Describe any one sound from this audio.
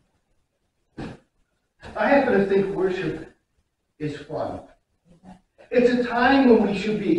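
An elderly man speaks calmly in a quiet, echoing hall.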